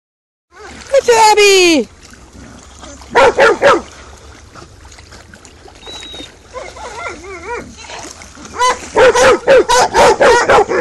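A dog barks excitedly over and over.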